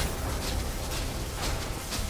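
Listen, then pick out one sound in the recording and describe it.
Electric bolts crackle and buzz loudly.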